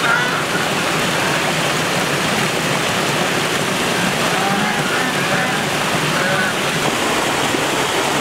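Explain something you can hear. Geese honk softly.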